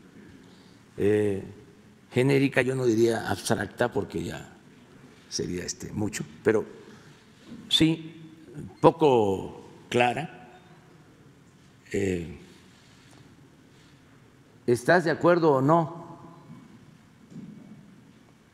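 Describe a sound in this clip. An elderly man speaks calmly into a microphone, heard in a large room.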